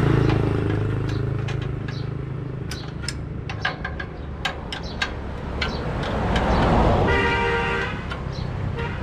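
Metal parts clink and tap.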